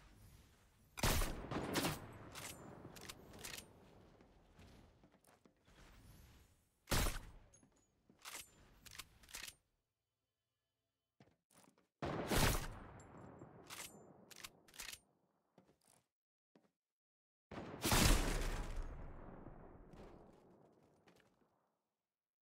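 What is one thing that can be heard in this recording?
A rifle fires loud single shots, each echoing away.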